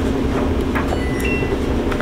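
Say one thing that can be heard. A washing machine dial clicks as it is turned.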